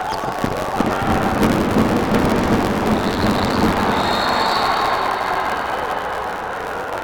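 A crowd cheers and roars in a large echoing hall.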